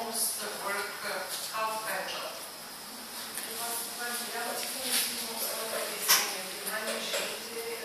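A woman lectures from the front of a room, heard from a distance with some echo.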